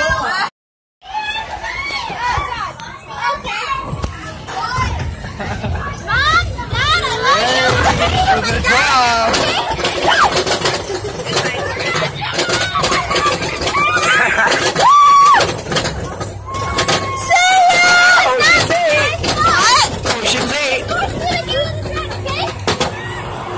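A roller coaster train clatters and rumbles along its track.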